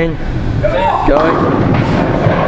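Bowling pins crash and clatter as a ball strikes them.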